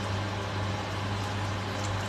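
Water pours from a kettle into a pot.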